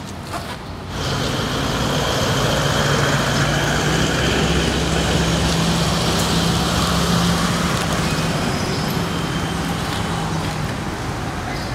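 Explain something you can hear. A car engine hums as the car drives past close by.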